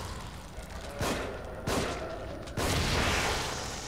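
A revolver fires several shots.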